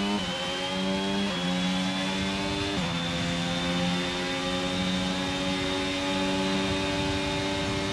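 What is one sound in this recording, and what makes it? A racing car engine roars at high revs, dropping briefly as it shifts up through the gears.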